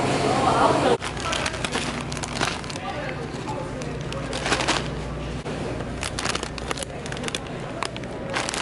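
A plastic chip bag crinkles and rustles in a hand.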